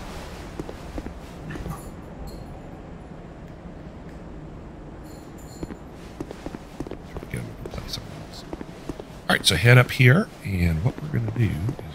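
Footsteps thud on stone and grass.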